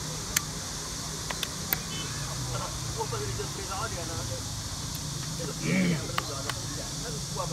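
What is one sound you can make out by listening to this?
Plastic game pieces click and clack on a wooden table.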